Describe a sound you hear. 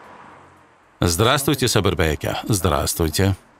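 A man speaks calmly and clearly up close.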